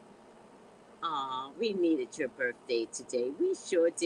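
A middle-aged woman speaks warmly and with animation into a headset microphone, heard as in an online call.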